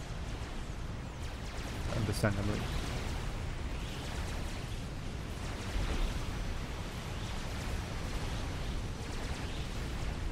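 Distant explosions rumble in a battle.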